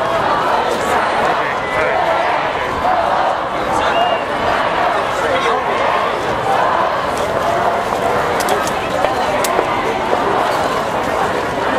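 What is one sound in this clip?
A large crowd of men and women chatters and murmurs outdoors.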